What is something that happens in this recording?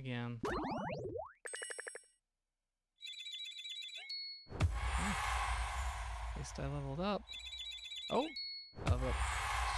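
Cheerful game chimes and jingles play in quick bursts.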